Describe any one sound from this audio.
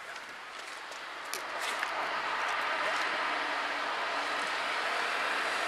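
A small bus drives along a road toward the listener, its engine growing louder.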